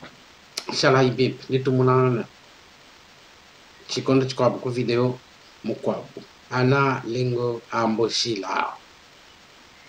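A man speaks calmly over a microphone in short phrases.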